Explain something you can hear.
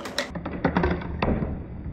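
Plastic balls rattle and knock inside a plastic jug.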